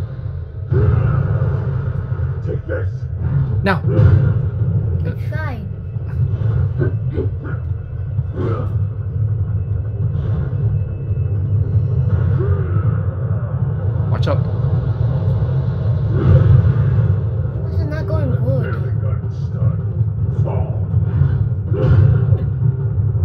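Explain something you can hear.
A young woman talks and reacts with animation, close to a microphone.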